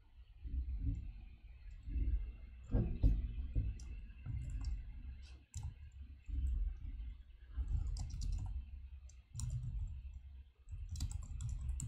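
Computer keys click.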